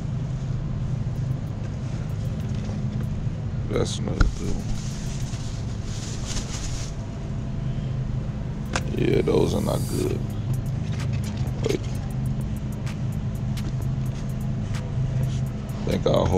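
Bell peppers rustle and bump together as a hand picks through them.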